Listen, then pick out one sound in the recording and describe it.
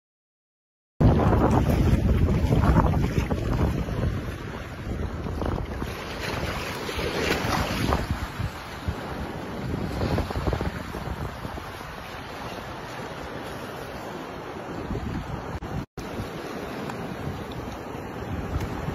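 Shallow water laps and swirls close by.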